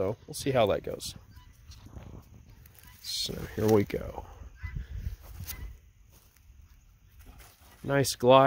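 A man talks calmly and close up, outdoors.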